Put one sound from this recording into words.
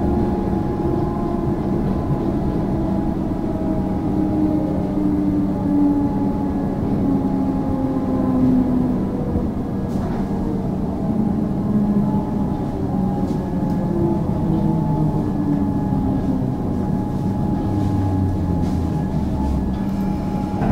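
A train hums and rumbles steadily from inside a carriage.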